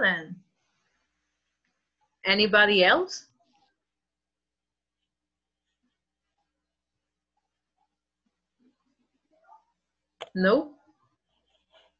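A young woman speaks in short phrases over an online call.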